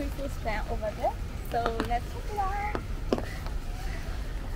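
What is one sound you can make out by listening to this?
A young woman speaks brightly and close by.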